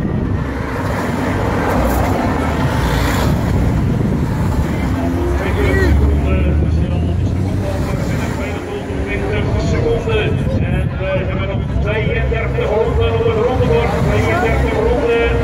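Car engines hum as cars drive past one after another.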